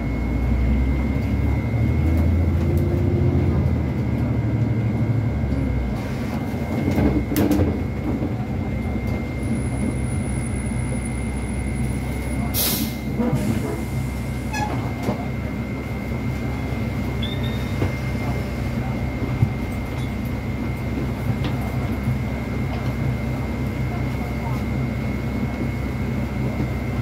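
A bus engine rumbles and hums steadily while driving.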